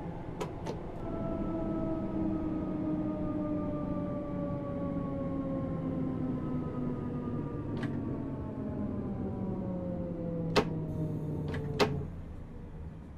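An electric train's motor hums and slowly drops in pitch as the train slows down.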